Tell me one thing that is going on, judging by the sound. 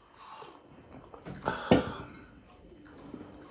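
A man slurps soup from a bowl.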